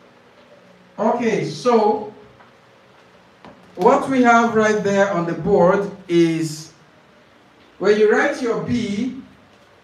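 A man speaks calmly and clearly into a nearby microphone, with pauses between phrases.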